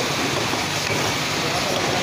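Plastic bottles clink and rattle against each other on a conveyor.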